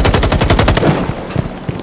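A rifle fires a rapid burst close by.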